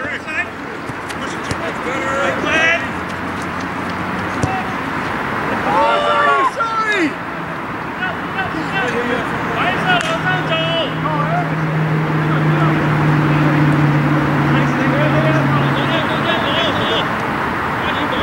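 Young men shout to each other across an open outdoor field.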